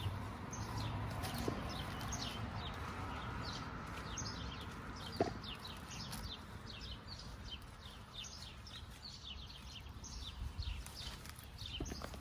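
Leaves rustle as a man pulls fruit from a tree branch.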